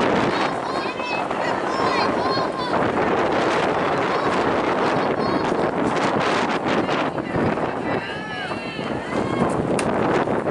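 Young women call out and cheer from across the field.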